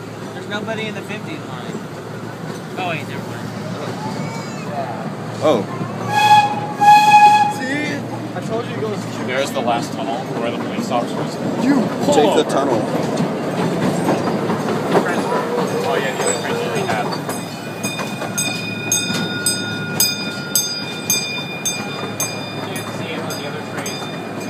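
A small train rumbles and clatters along its tracks.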